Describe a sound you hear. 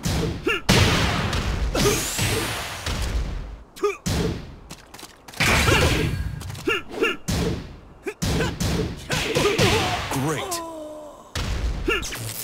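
Punches and kicks land with sharp smacking thuds.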